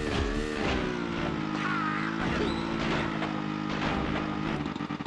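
A motorbike engine hums steadily at a high idle.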